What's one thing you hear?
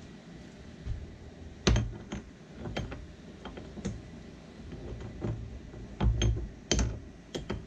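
Metal parts clink and click in a man's hands.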